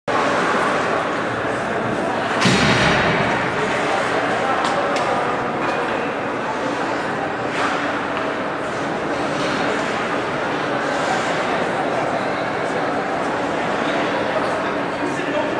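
Spectators murmur and chatter in a large echoing arena.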